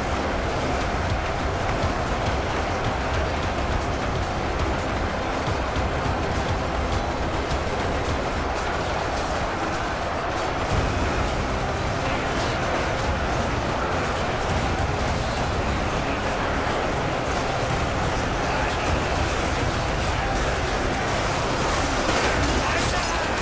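A huge crowd of fighters clashes in a loud, steady battle roar.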